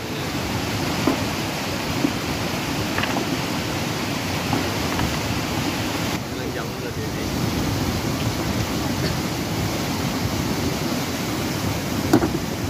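A fast mountain river rushes and roars close by.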